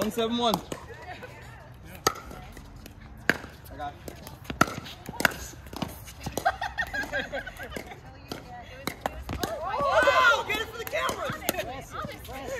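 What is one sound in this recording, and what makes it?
Paddles pop sharply against a plastic ball in quick rallies.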